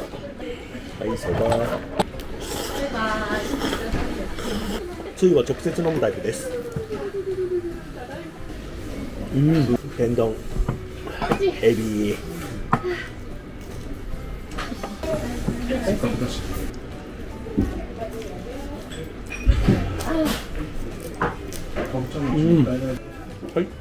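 A middle-aged man talks animatedly close to the microphone.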